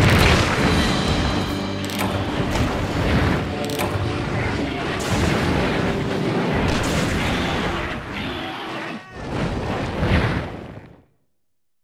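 Blades swish and clash in a fight.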